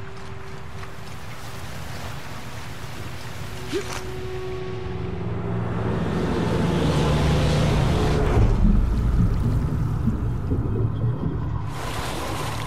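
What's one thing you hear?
A waterfall roars nearby.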